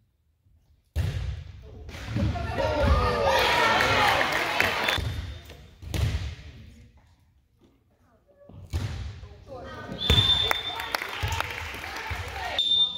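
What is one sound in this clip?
Spectators cheer and shout.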